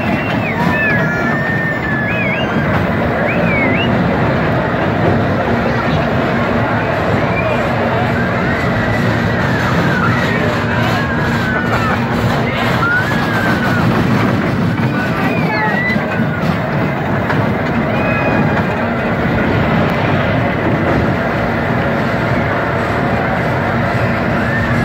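Children scream and cheer on a ride outdoors.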